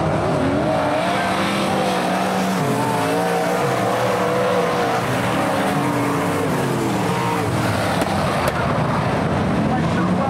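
Several racing car engines roar loudly, revving up and down as they race past.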